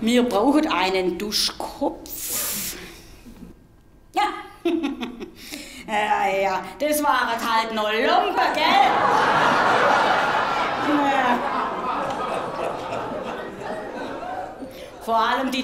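A middle-aged woman speaks with animation into a microphone on a stage.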